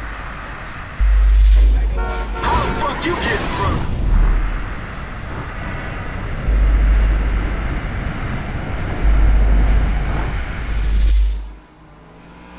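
A car engine roars and revs loudly.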